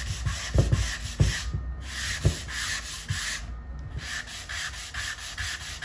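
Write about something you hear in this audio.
A sanding block scrapes back and forth across wood in quick strokes.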